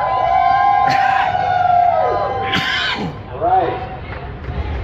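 A woman shouts and chants loudly through a megaphone.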